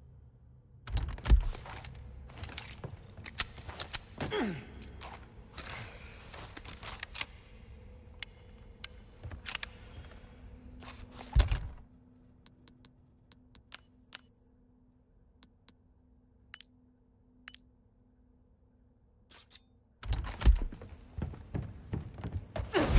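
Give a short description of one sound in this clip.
Footsteps thud.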